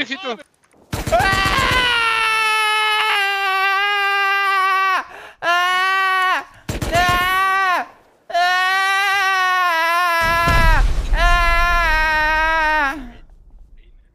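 A young man sings loudly and drawn-out into a close microphone.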